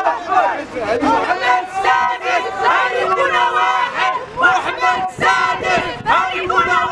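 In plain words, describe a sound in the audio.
Women shout and chant loudly close by.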